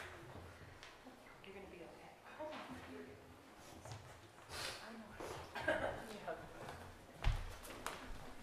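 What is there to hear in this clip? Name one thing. Footsteps thud on a wooden floor in a large echoing hall.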